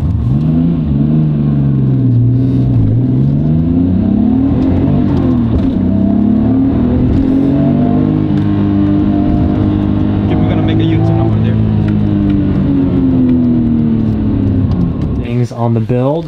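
A car engine revs up and down loudly, shifting through gears.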